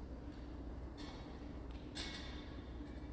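A metal cup clinks against a hard surface.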